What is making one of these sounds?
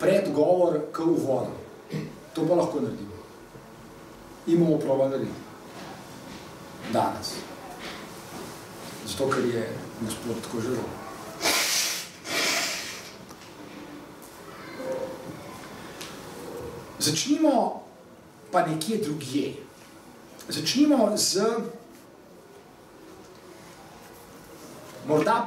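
A middle-aged man speaks calmly and thoughtfully, close by.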